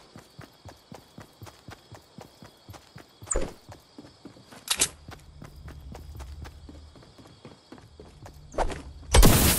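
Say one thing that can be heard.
Quick footsteps thud on a wooden floor.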